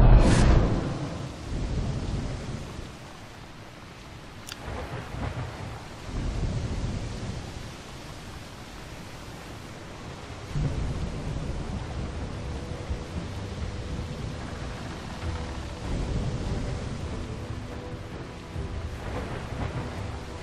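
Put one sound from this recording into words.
Waves crash and surge against a wooden ship.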